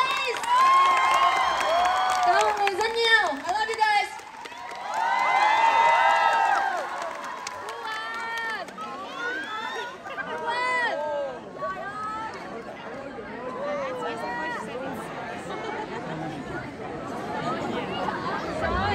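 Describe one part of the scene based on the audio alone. A large crowd cheers and whoops loudly in a big echoing hall.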